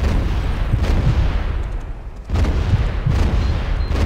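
Ship cannons fire with loud booms.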